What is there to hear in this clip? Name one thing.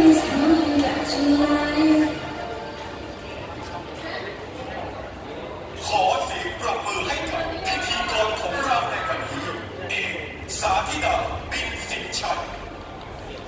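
A young girl sings through a microphone over loudspeakers.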